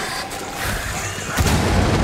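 A gun fires loud shots that boom through the space.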